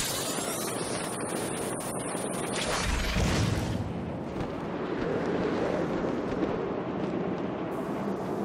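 Wind rushes loudly past, as if diving through the air.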